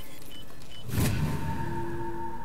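A game jingle plays as the task completes.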